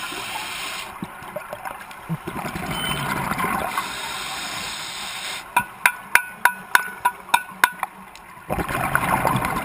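Air bubbles from scuba divers gurgle and rush in bursts, heard underwater.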